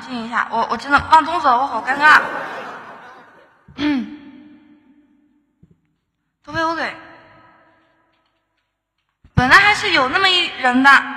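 A young woman sings into a microphone with echo.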